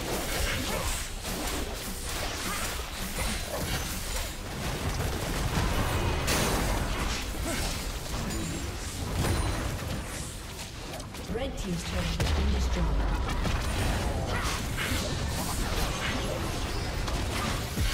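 Game spell effects crackle and burst during a battle.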